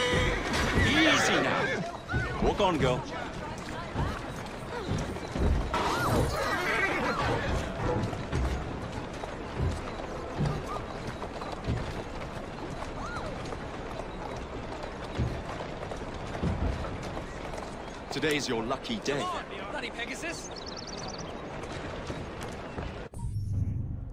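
Carriage wheels rattle over cobblestones.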